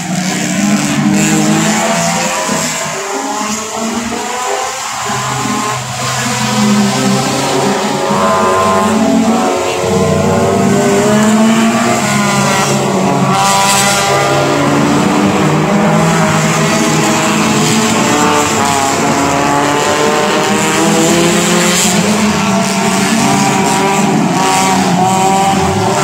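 Racing car engines roar and rev loudly as the cars speed past.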